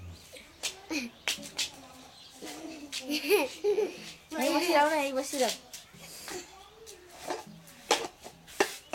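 A young boy laughs and chatters excitedly close by.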